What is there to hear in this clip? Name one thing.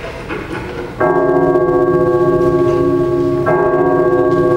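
Music plays through loudspeakers.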